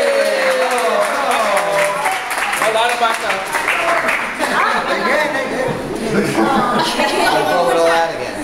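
A group of men and women sing together nearby.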